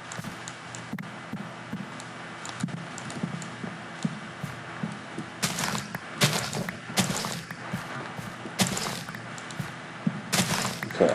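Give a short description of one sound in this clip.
Footsteps thud softly on soft ground.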